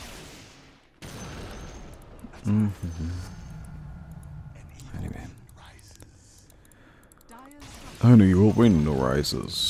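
Magic spells crackle and burst in a game.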